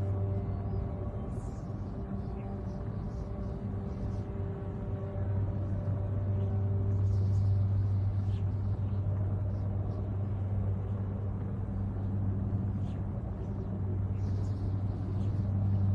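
Spacecraft engines hum and roar steadily.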